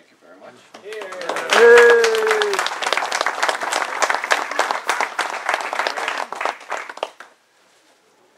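Paper crinkles and rustles as a gift is unwrapped.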